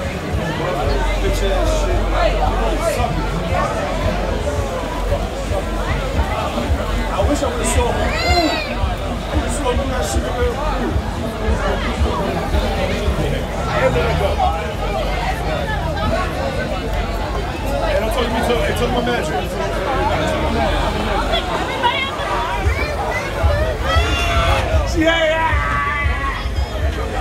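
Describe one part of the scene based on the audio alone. A crowd of young men and women chatter and talk loudly outdoors close by.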